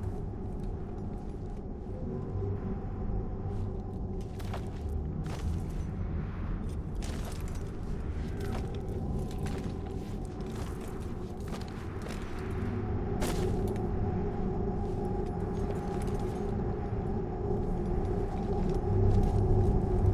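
Footsteps scuff on stone.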